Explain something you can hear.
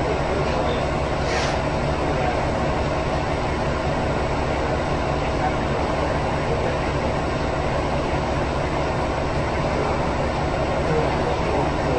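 A train's diesel engine idles with a steady low rumble.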